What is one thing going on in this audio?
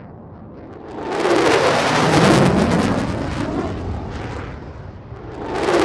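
Jet engines roar loudly overhead.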